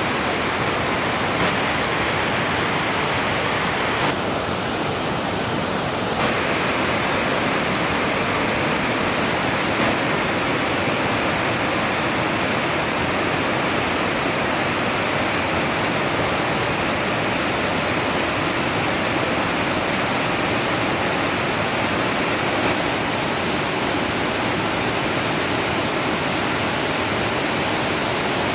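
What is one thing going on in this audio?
A waterfall roars steadily outdoors.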